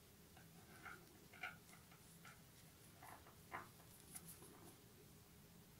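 Knitting needles click and tap softly against each other.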